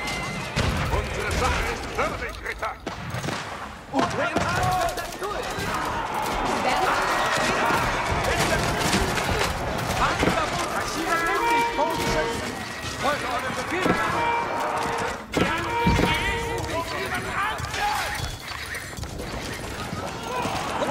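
Many soldiers shout in a large battle.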